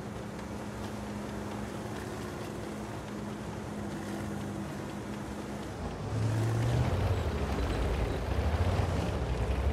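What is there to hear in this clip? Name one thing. A medium tank's engine rumbles as the tank drives.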